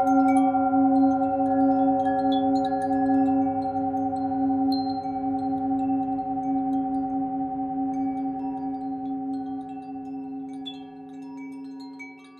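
A metal singing bowl rings with a steady, humming tone that slowly fades.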